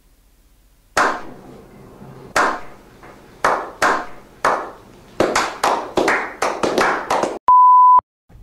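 Several men clap their hands.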